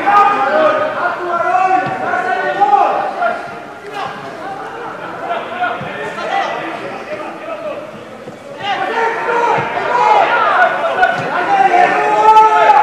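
A football is kicked with dull thumps on a grass pitch.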